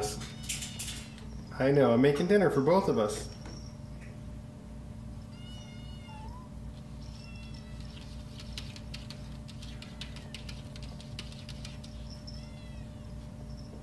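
A kitten mews in a thin, high voice.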